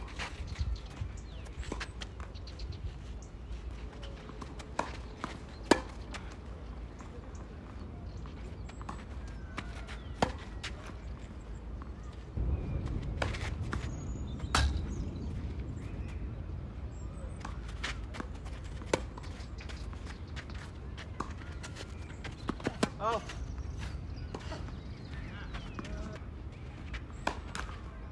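Tennis balls are struck with rackets in sharp pops.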